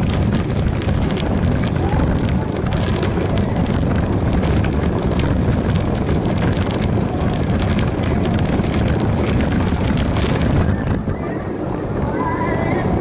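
Wind rumbles loudly against a moving bike's microphone.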